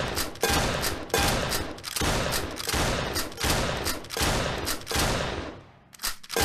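Game gunshots fire in quick bursts, each with a booming echo.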